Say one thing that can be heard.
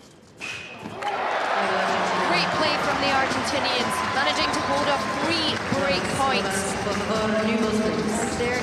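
A crowd applauds and cheers in a large hall.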